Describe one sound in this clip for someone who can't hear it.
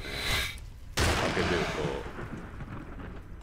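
Electricity crackles and sizzles in a sharp burst.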